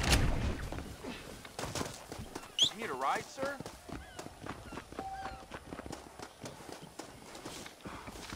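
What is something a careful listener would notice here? Footsteps run over gravel and dirt.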